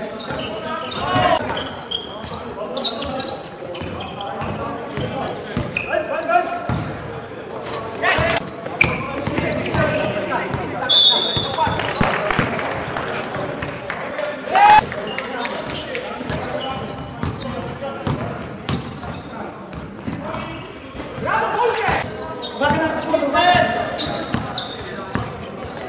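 Men shout to each other during the game.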